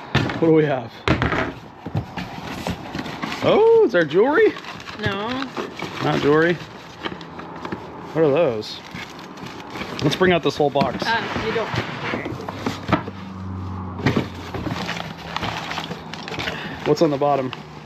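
Cardboard boxes rustle and scrape as items are packed.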